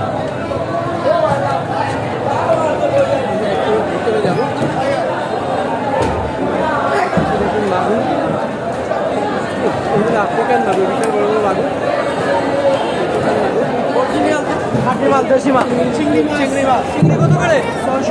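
A crowd of men chatter loudly all around.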